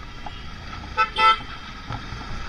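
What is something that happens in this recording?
Car horns honk in traffic.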